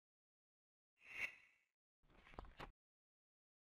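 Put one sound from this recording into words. Short menu chimes sound twice.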